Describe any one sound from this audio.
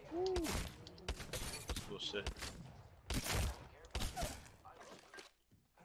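A young man talks excitedly into a microphone, close by.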